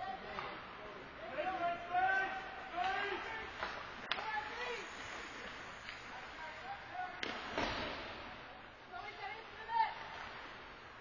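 Young men shout and call out across the ice.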